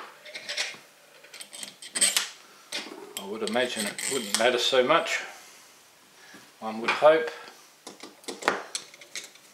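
Small metal tools tap and clatter on a hard surface.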